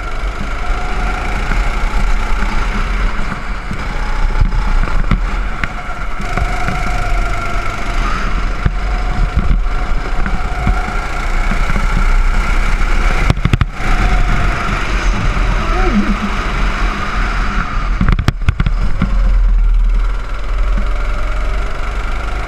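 A go-kart engine buzzes loudly, rising and falling in pitch as it speeds up and slows down.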